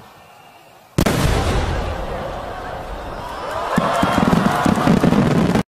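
Firework sparks crackle and fizz.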